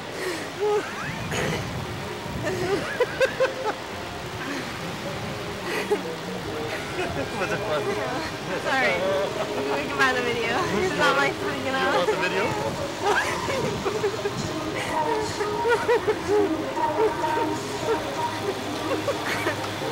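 A man laughs and talks close by.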